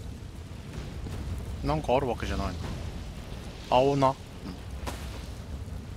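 Blows land with thuds and clangs in a close fight.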